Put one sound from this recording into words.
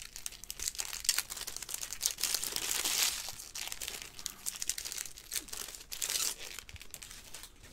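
Trading cards rustle and slide against each other as they are shuffled.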